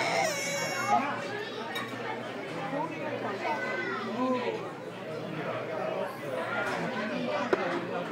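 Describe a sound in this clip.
Men and women chat at a low murmur nearby.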